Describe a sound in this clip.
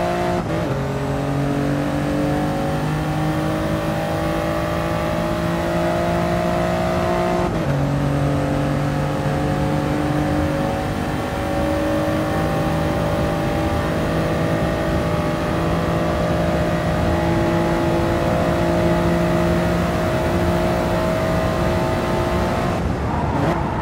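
A racing car engine roars loudly and climbs steadily in pitch.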